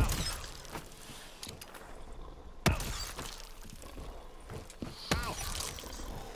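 An energy weapon fires with sharp, crackling zaps.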